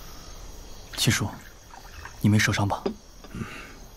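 A young man asks a question calmly, close by.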